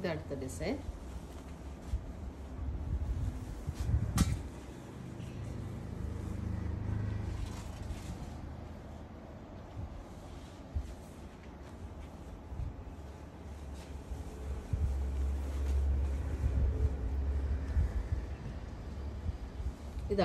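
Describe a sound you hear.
Fabric rustles as it is unfolded and spread out.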